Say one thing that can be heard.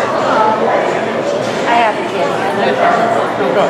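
A man speaks loudly to a gathered crowd.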